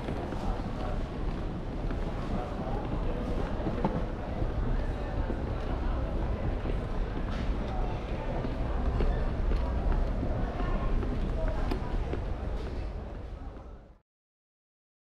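Voices murmur faintly in a large, echoing hall.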